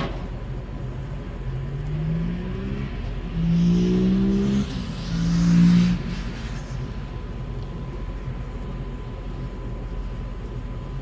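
Meat sizzles softly on a grill.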